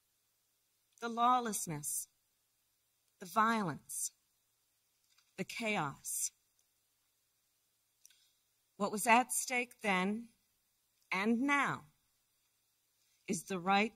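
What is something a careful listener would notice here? A woman speaks calmly into a microphone in short phrases with pauses.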